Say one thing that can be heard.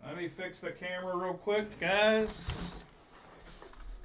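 A plastic sleeve crinkles.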